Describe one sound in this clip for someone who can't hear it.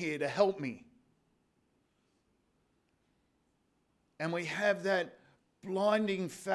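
An older man speaks calmly into a microphone, with pauses.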